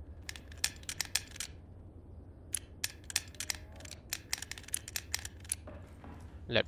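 A metal puzzle lock clicks as its rings are turned.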